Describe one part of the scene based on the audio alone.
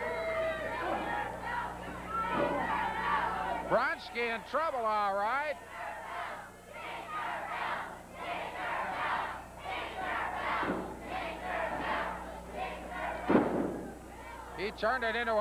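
A crowd of spectators cheers and shouts in a large hall.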